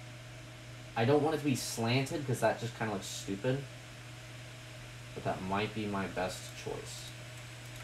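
A young person speaks calmly nearby.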